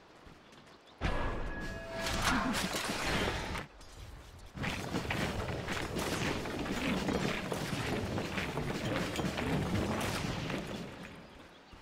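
Magic spells crackle and burst amid the clash of a fight.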